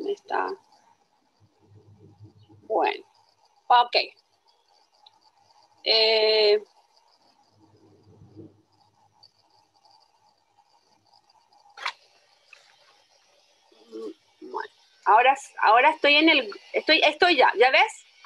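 A middle-aged woman speaks calmly over an online call, in short bursts with pauses.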